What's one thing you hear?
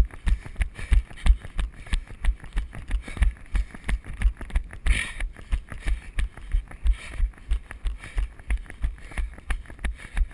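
Bicycle tyres roll and bump steadily along a dirt trail.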